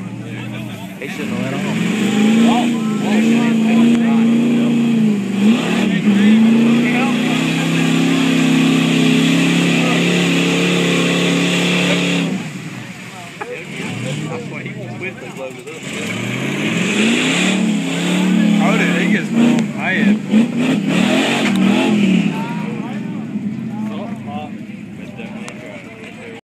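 A truck engine roars loudly as it revs up and down.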